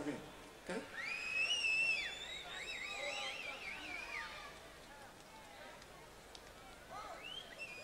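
An electric guitar plays bending, wailing notes.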